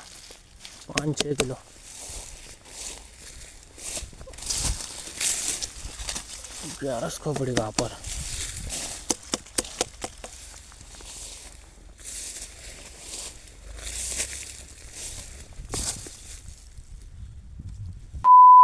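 Leaves rustle as hands push through dense plants.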